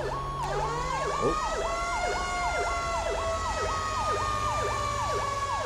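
A fire engine siren yelps rapidly up and down.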